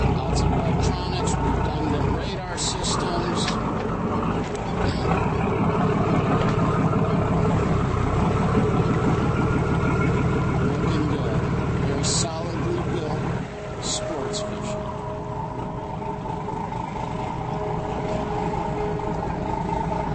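Water splashes against a hull.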